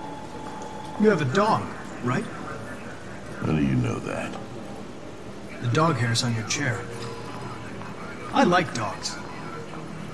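A young man speaks calmly and evenly, close by.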